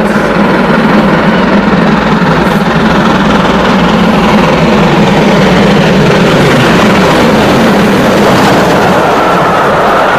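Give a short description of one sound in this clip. A steam locomotive chuffs loudly as it approaches.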